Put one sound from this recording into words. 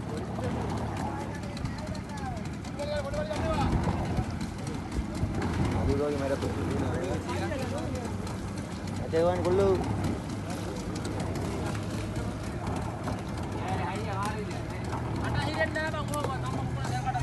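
Several men shout and call to each other across open water.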